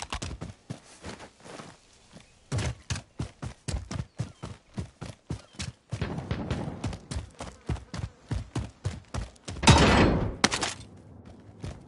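Footsteps thud quickly and steadily as someone runs.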